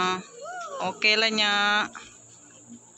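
A young girl speaks and laughs close by.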